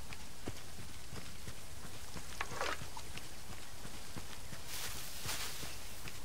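Hooves thud as a horse gallops along a dirt path.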